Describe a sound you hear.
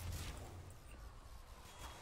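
A fist swings and thumps in a punch.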